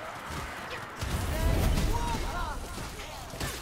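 A fiery explosion booms and rumbles.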